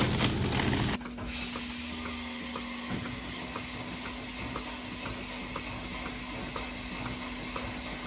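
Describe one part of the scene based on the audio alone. A milking machine hums and pulses steadily.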